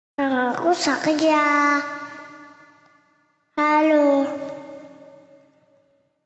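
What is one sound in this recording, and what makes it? A young boy sings into a headset microphone, holding long notes with reverb.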